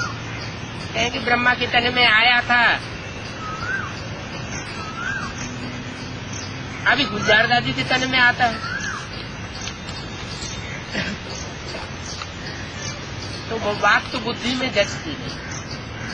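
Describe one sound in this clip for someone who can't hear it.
An elderly man speaks calmly and close by, in short bursts with pauses.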